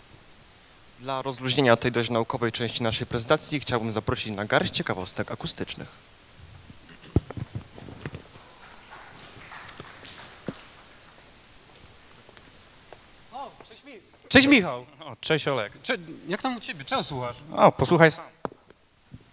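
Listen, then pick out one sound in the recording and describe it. A man speaks with animation into a microphone over loudspeakers in a large hall.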